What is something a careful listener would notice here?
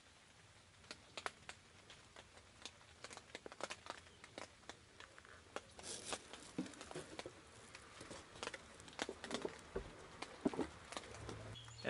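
Metal parts click and clatter against each other.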